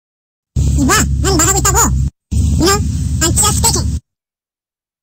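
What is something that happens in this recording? A man speaks with animation.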